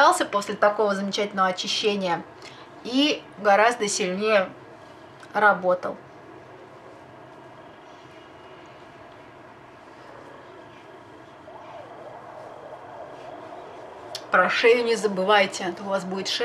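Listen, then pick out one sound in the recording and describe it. A young woman talks animatedly close to a microphone.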